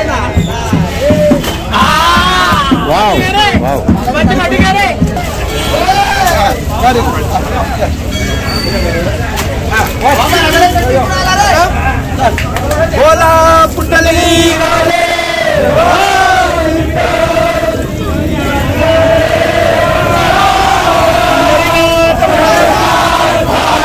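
A crowd of men shouts and chants loudly nearby.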